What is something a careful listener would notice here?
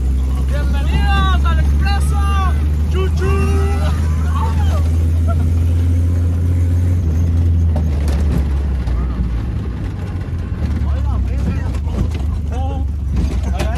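A car engine roars steadily at speed.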